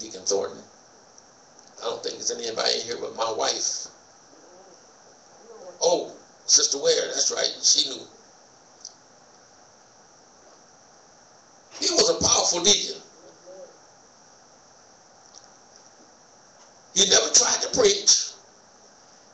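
A man speaks slowly into a microphone in a hall, in bursts with long pauses.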